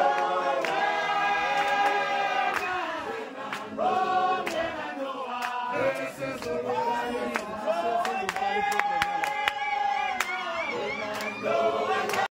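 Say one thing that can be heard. A crowd of men and women sings loudly together outdoors.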